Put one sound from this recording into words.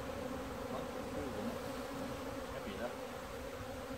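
A beekeeper lifts a wooden hive box and sets it down.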